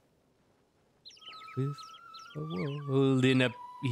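A bright, cheerful tune plays with quick chirping notes.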